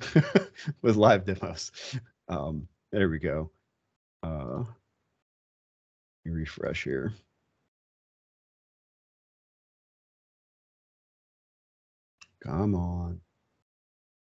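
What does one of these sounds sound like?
A man talks over an online call, in short bursts with pauses.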